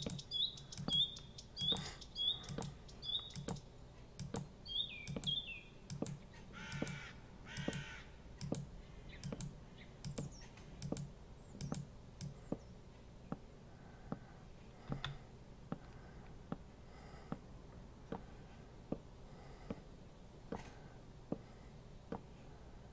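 Footsteps knock steadily on wooden boards.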